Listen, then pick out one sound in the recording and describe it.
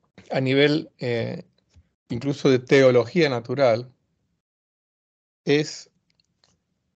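A middle-aged man speaks calmly into a microphone, heard as if through an online call.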